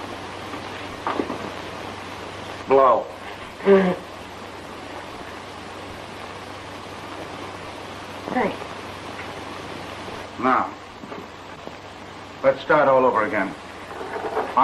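A man speaks quietly and closely.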